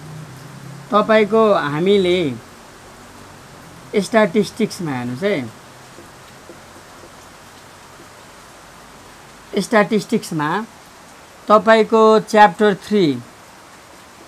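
A young man speaks calmly nearby, in short phrases with pauses.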